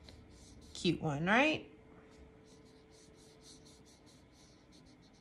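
A paintbrush brushes softly across paper in short strokes.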